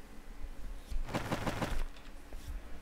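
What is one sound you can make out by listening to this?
A page of a book turns with a papery rustle.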